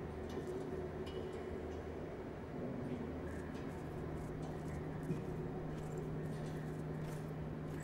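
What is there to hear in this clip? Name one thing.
Soft footsteps pad across a metal floor.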